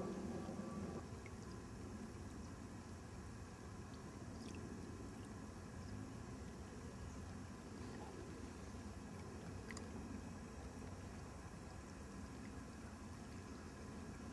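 Small waves lap gently on a pebbly lake shore.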